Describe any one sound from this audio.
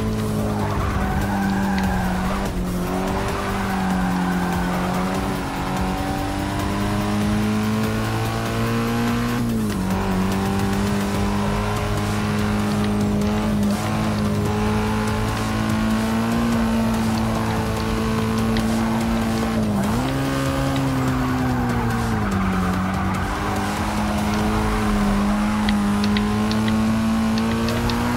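A car engine roars at high revs, dropping sharply at each gear change.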